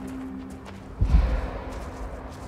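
A heavy spacecraft touches down with a deep thud.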